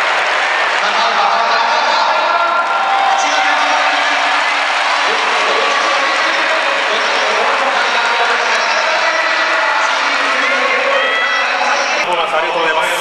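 A large stadium crowd cheers and shouts loudly.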